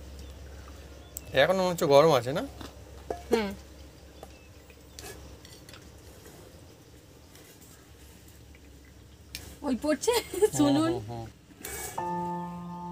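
A metal ladle scrapes and clinks against a metal colander.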